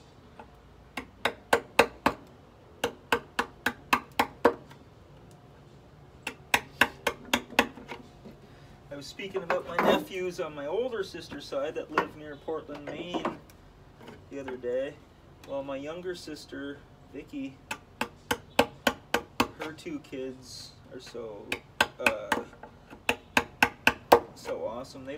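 A mallet taps rapidly on a chisel cutting into wood.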